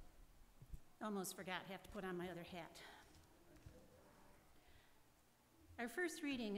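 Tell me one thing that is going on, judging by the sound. An elderly woman reads out into a microphone in an echoing hall.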